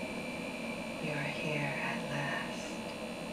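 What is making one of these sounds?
A young woman speaks softly and slowly.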